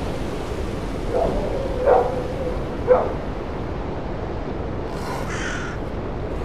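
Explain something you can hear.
Wind rustles steadily through trees outdoors.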